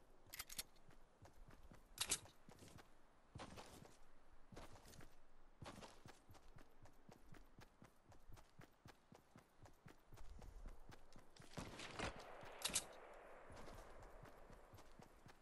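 Quick footsteps run across grass.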